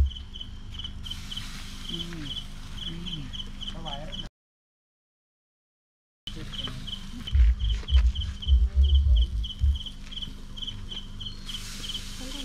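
Meat sizzles softly over hot coals.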